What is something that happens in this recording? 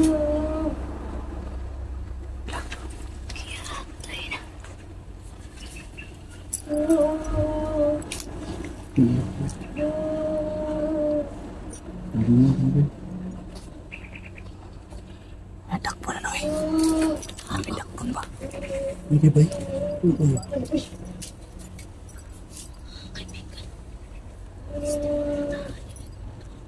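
A cat meows repeatedly nearby.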